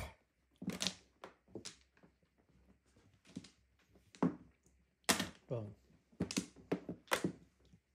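Mahjong tiles clack together on a table.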